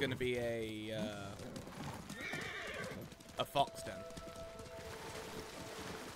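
A horse gallops with heavy hoofbeats.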